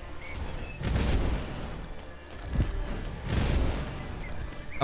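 Magic spells whoosh and burst in bursts.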